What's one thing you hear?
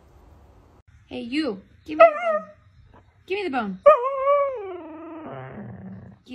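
A husky howls and grumbles in long, bending whines.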